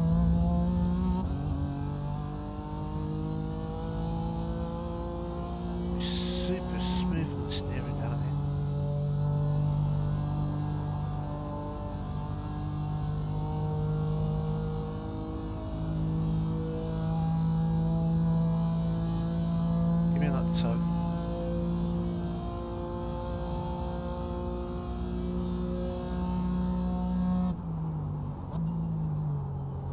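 A racing car engine roars steadily, rising in pitch and dropping as it shifts gears.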